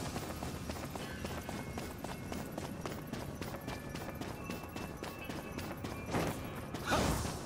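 Footsteps run quickly across hard stone.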